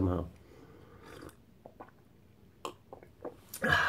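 A young man sips from a glass.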